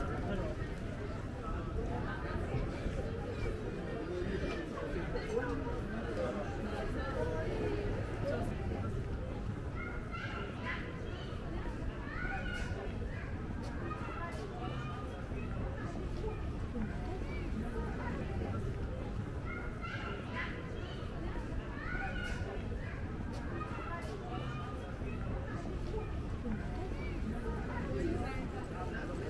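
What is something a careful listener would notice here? Footsteps shuffle on a paved walkway.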